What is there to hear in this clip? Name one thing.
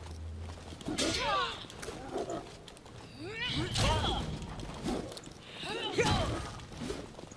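Metal weapons clash and thud in a fight.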